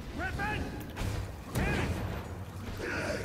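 Magic blasts crash and boom in a fight.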